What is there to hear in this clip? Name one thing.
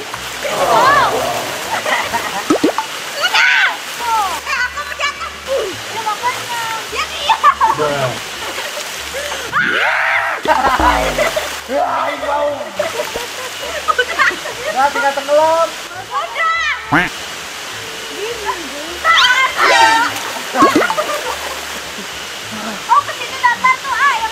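A young boy shouts and laughs excitedly.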